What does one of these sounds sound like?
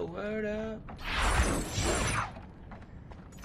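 A flaming blade swings with a loud whoosh.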